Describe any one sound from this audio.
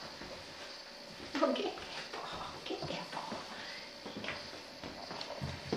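A small dog's claws tap on a wooden floor.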